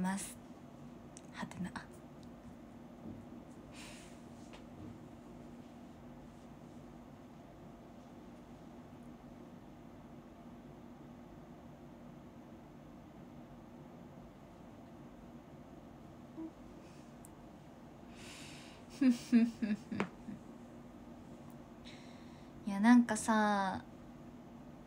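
A young woman speaks softly and casually, close to a microphone.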